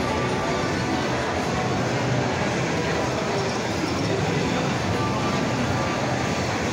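A crowd murmurs in a busy, echoing room.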